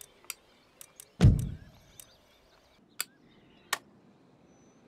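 Short sharp clicks sound now and then.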